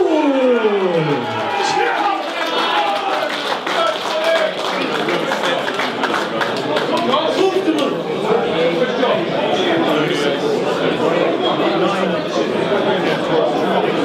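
A crowd of men chatter and talk over each other nearby.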